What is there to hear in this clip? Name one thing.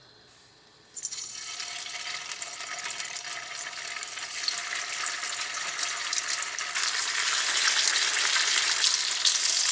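Dumplings sizzle and crackle in hot oil in a pan, growing louder.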